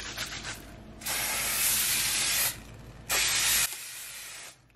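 Oil sprays from a spray bottle in short hisses.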